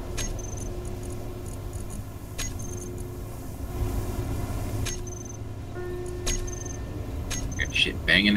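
Short clicks sound every few seconds.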